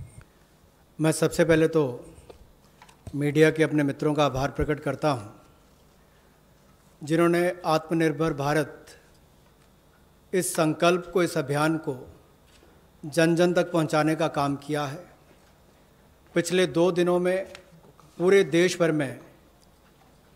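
A young man speaks steadily into a microphone, in short phrases with pauses.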